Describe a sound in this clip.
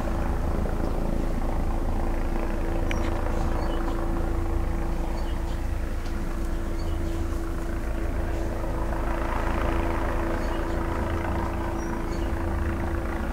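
Leaves rustle in the wind.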